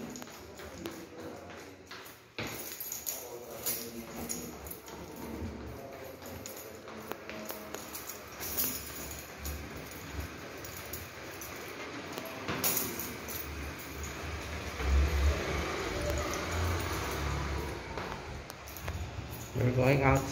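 Footsteps tap down tiled stairs in an echoing stairwell.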